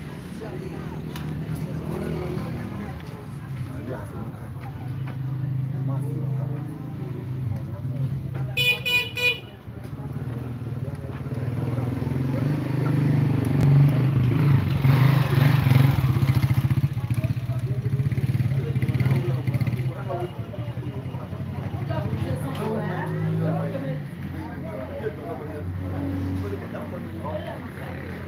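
A motorcycle engine idles nearby with a low, steady rumble.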